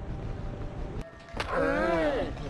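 A heavy punch lands with a thud.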